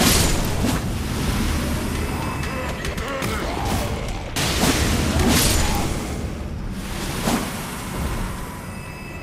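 Blades slash and clang in a fast fight.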